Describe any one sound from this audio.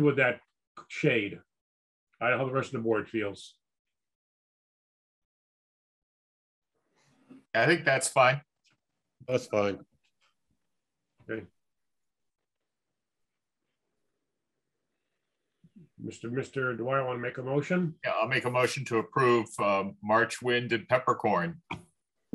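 A man speaks calmly over an online call, in short bursts.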